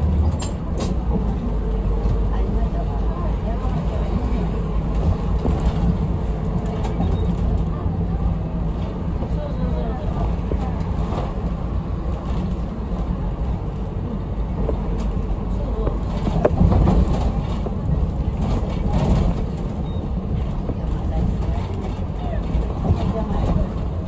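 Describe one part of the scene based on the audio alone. The bus rattles and creaks over the road.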